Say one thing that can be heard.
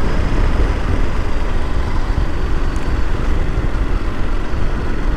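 A motorcycle engine hums steadily while cruising.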